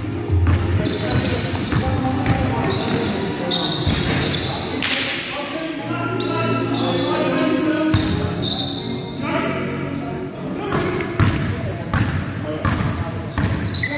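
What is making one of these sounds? Sneakers squeak sharply on a hard court in a large echoing hall.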